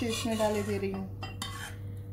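Thick batter pours from a pan into a cup.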